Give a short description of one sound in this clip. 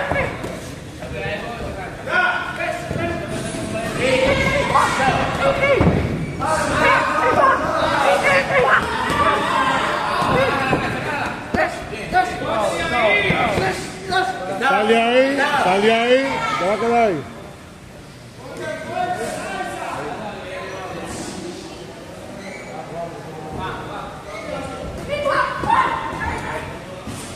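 Young men talk and call out in an echoing room.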